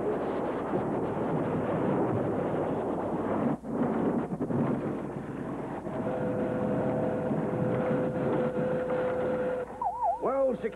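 A heavy metal tower crashes into the sea with a loud roaring rush of water.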